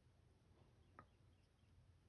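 A small object clicks against a hard surface.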